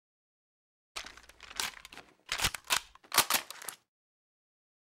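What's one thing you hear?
A rifle is reloaded with metallic clicks and clacks.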